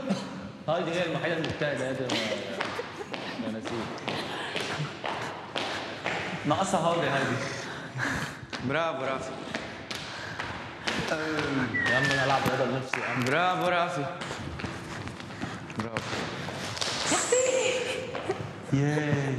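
Feet tap quickly on a wooden floor.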